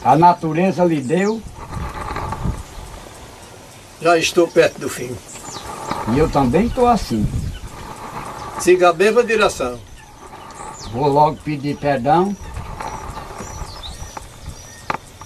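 Several men talk calmly nearby, in turns.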